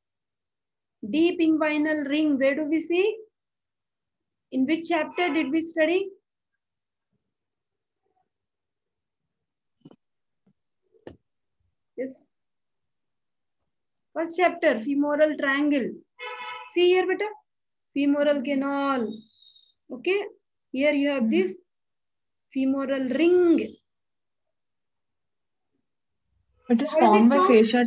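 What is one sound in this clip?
A woman speaks calmly through an online call microphone, in short phrases with pauses.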